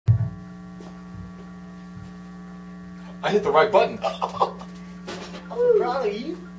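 An amplifier hums steadily.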